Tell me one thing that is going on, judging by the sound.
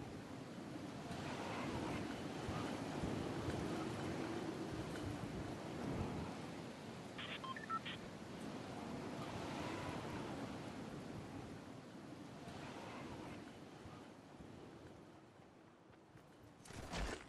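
Wind rushes steadily past during a long glide down.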